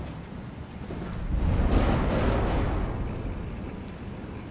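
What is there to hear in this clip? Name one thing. A machine powers on with a low rising hum.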